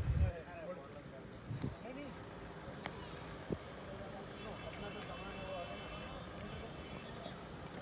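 Men talk calmly nearby outdoors.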